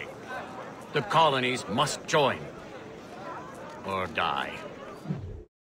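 A man speaks loudly to a crowd, his voice carrying outdoors.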